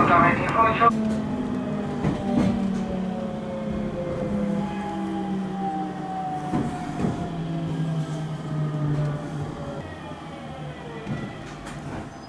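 A train's motor whines and falls in pitch as the train slows down.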